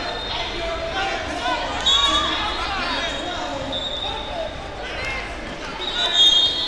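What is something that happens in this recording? Wrestlers' shoes squeak on a mat.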